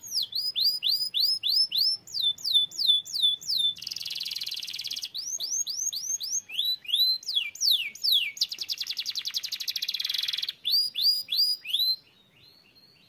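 A canary sings loudly up close, with quick repeated whistles and fast rattling trills.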